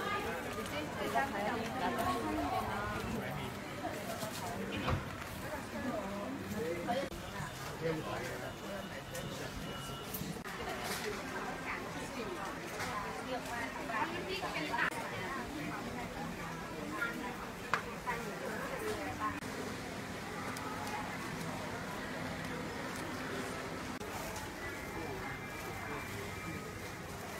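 A crowd murmurs and chatters in a busy market.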